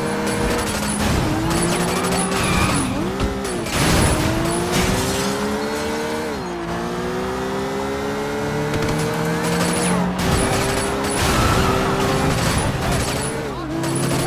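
Cars crash into each other with a metallic crunch.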